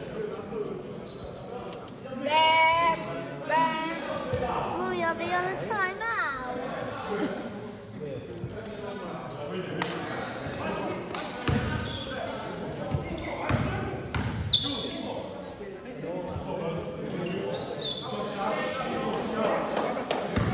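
Young men call out to each other in a large echoing hall.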